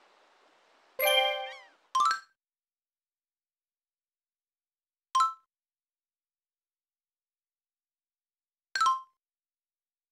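Bright game chimes ring out a few times as messages pop up.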